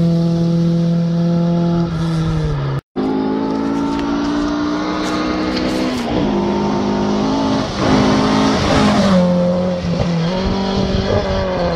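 A rally car engine roars and revs at high speed, shifting up and down through the gears.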